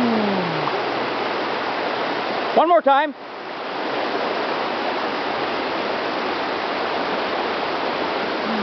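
Water rushes steadily over rocks in a stream.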